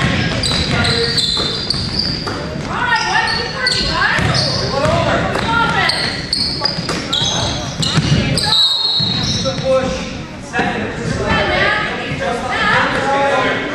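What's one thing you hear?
Young players shout and call out across a large echoing hall.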